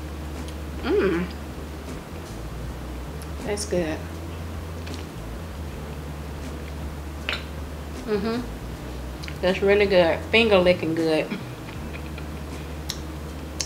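A woman hums with pleasure while chewing.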